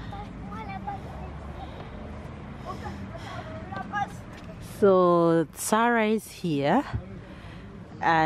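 A small girl chatters in a high voice close by.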